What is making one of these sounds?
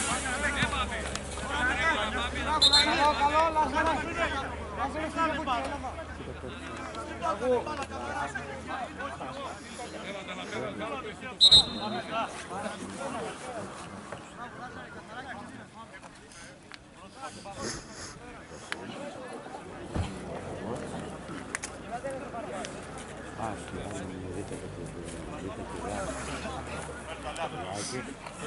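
Men shout and call out from a distance across an outdoor football pitch.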